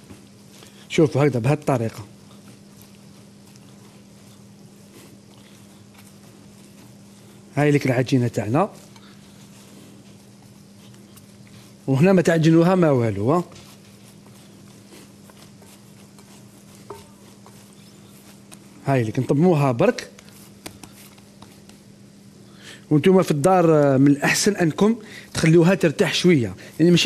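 A man talks calmly in short bursts, close to a microphone.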